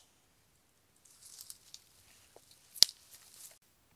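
Dry leaves and twigs rustle and crackle as a hand pushes through them.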